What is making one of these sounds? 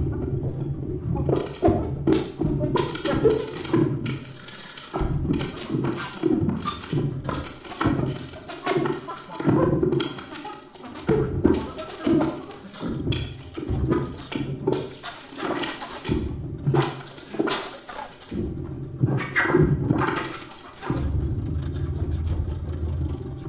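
A cello plays low notes.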